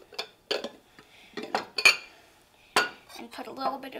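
Ceramic bowls clink together as they are set down.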